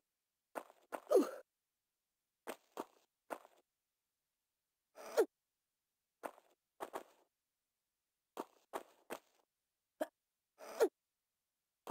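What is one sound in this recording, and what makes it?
A young woman grunts with effort as she jumps and climbs.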